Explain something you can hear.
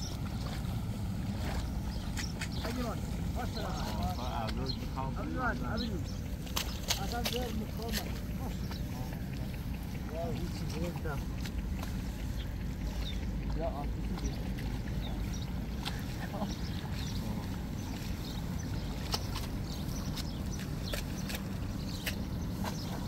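Hands splash and slosh in shallow water while pushing plants into mud.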